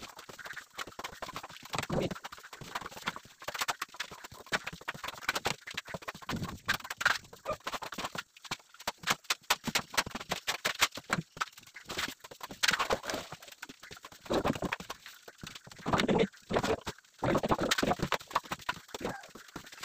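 A trowel scrapes and knocks inside a plastic bucket.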